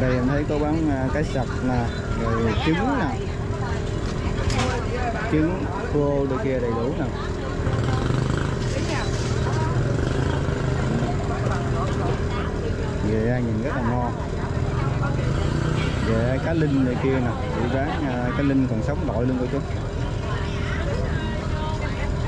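Women chatter nearby with animation.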